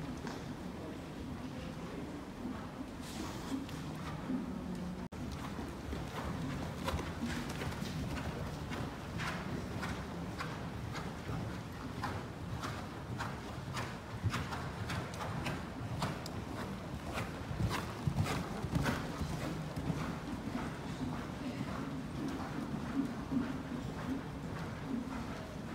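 Horses' hooves thud softly on sand in a large echoing hall.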